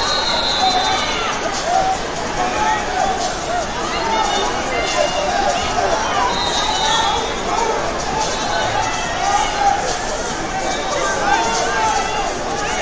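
A large crowd chatters in an echoing hall.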